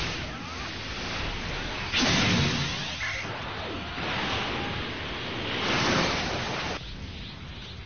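Energy blasts whoosh and crackle in a video game.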